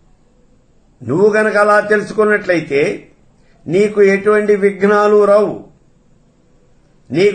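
An elderly man chants in a steady, drawn-out voice close to a microphone.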